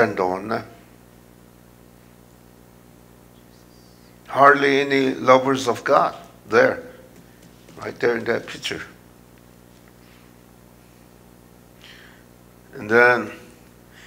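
An elderly man speaks slowly through a microphone, with long pauses.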